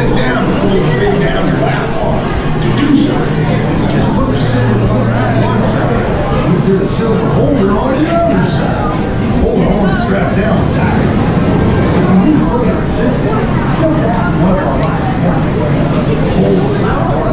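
A crowd of people chatter nearby, with voices overlapping.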